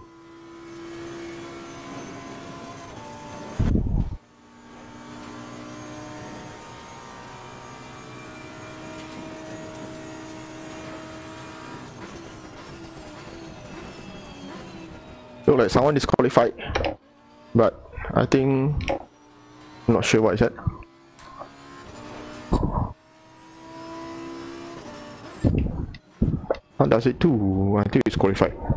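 A racing car engine whines steadily, then drops in pitch as the car slows.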